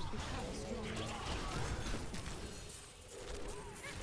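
A level-up chime rings out.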